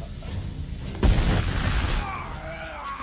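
A gun fires with a heavy boom.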